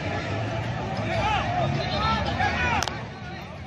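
Several men shout loudly to each other across an open field.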